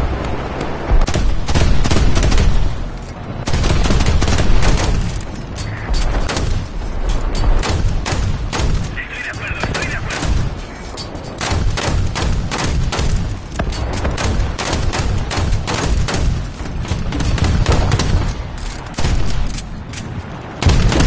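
An anti-aircraft gun fires in rapid bursts.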